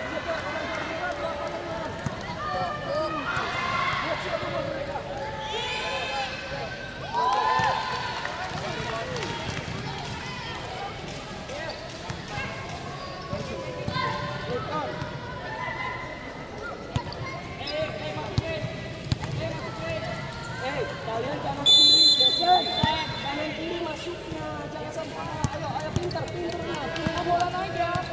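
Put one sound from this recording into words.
Children chatter and shout in a large echoing hall.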